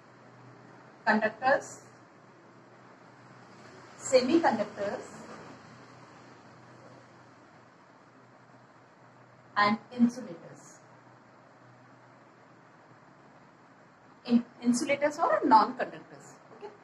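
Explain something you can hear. A middle-aged woman speaks calmly in short phrases, close by.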